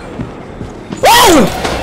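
A young man cries out loudly in fright.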